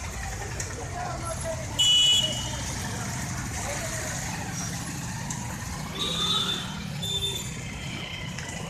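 Motorcycle engines hum steadily nearby.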